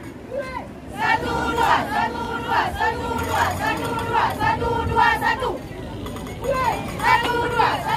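A group of young women chant together in unison.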